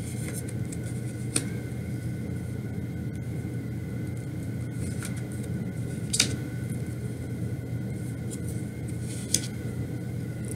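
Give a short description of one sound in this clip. Cards are laid down on a cloth-covered table with soft taps and slides.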